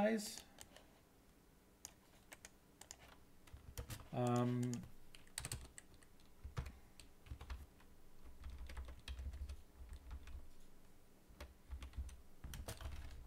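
Computer keys click in quick bursts.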